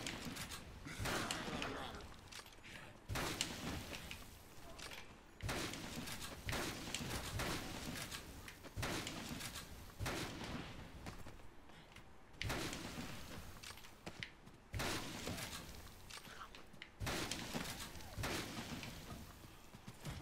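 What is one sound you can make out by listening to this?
A rifle fires single loud shots, one every few seconds.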